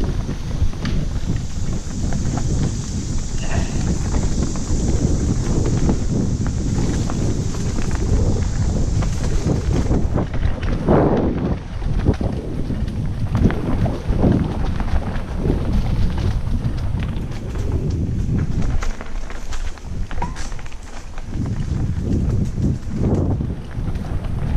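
Tyres crunch over dry leaves and twigs.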